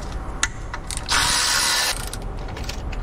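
A cordless ratchet whirs briefly.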